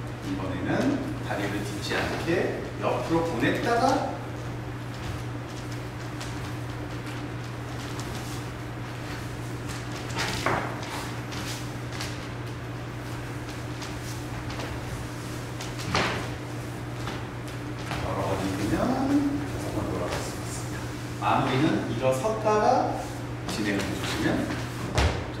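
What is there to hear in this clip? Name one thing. Shoes slide and tap on a wooden floor.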